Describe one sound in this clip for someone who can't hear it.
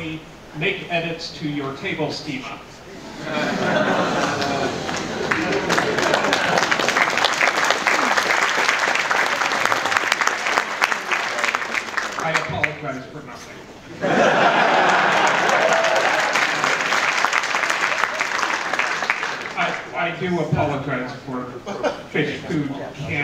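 A young man speaks loudly to a crowd.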